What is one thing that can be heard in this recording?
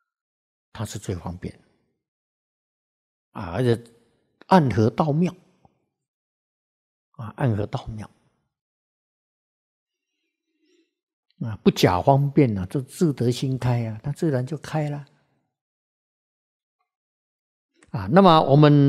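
An elderly man speaks calmly into a microphone, in short phrases with long pauses.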